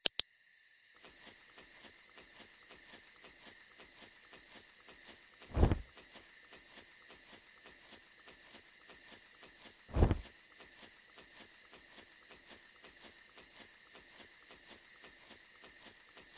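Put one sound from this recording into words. Footsteps crunch quickly and steadily through grass.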